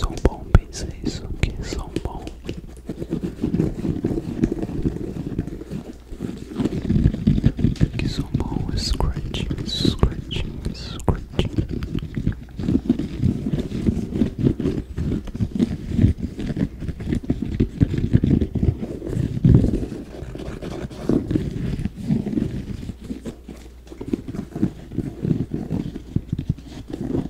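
A young man whispers softly, very close to a microphone.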